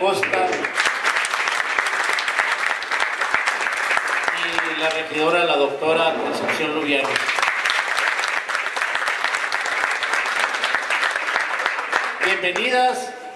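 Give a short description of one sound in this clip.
A crowd claps and cheers loudly in a large echoing hall.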